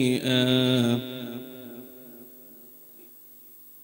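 An echo of a man's chanting rings on and slowly fades.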